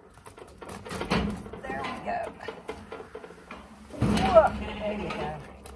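A metal gate clanks and rattles.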